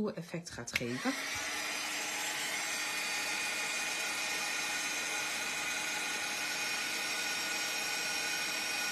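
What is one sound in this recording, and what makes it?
A heat gun blows with a steady whirring hum.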